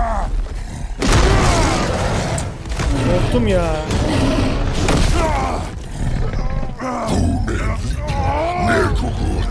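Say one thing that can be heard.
A troll roars loudly.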